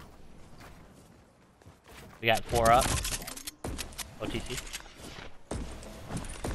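Footsteps thud quickly on wooden stairs.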